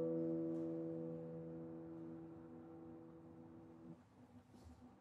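A classical guitar chord rings out and slowly fades.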